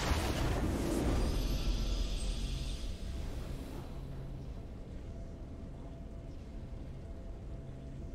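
A triumphant video game jingle plays softly.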